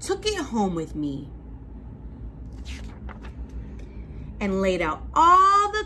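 A woman reads aloud with lively expression, close by.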